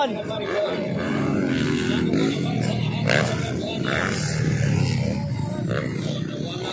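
Dirt bike engines roar and rev nearby, outdoors.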